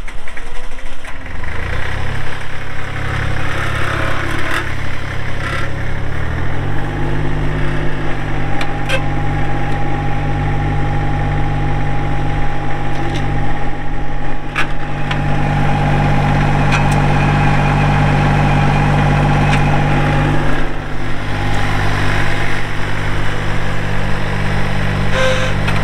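A small tractor engine starts up and runs with a steady rumble.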